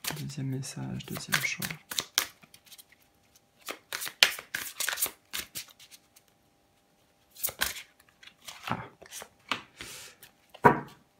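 Playing cards riffle and flick as a deck is shuffled by hand.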